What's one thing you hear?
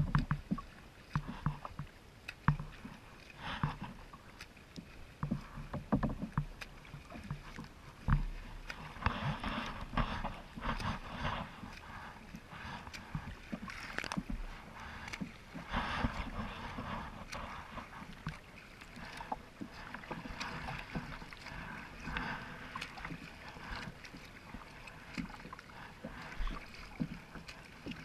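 Water splashes and sloshes close by in choppy waves.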